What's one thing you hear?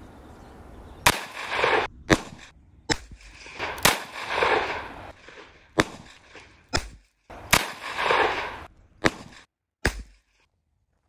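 A revolver fires loud shots that echo outdoors.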